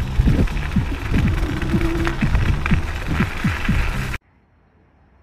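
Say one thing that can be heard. Wind buffets loudly past a moving rider.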